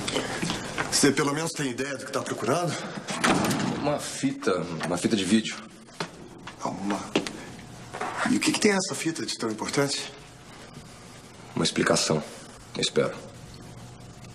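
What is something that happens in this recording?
A young man speaks in a calm, conversational voice.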